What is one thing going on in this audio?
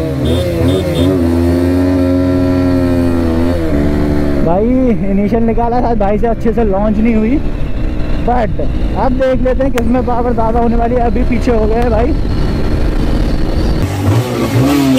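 A motorcycle engine roars, its pitch rising and falling.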